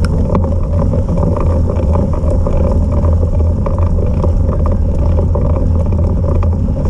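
A vehicle engine drones steadily at low pitch.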